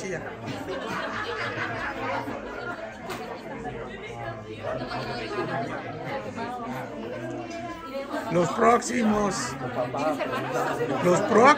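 Several men and women talk and laugh together nearby.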